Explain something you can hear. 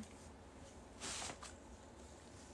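A young woman blows her nose into a tissue.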